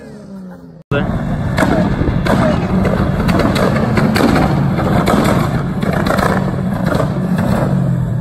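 A muscle car pulls away.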